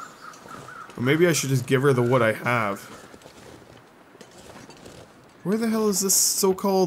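A young man speaks animatedly into a close microphone.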